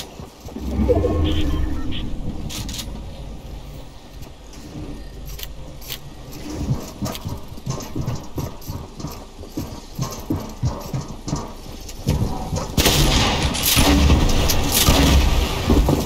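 Building pieces clack and thud in quick succession in a video game.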